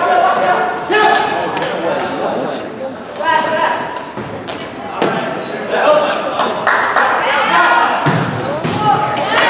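A volleyball is struck with sharp slaps.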